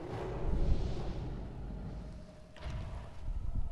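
Fiery magic blasts crackle and roar in a game.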